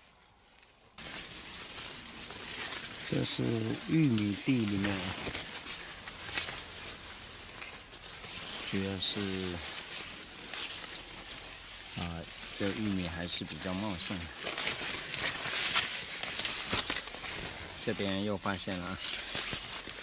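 Corn leaves rustle and swish as someone pushes through them.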